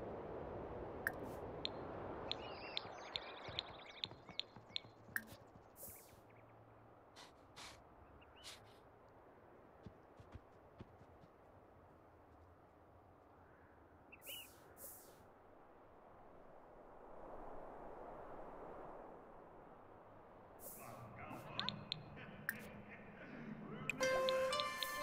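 Short interface clicks sound as menus pop open.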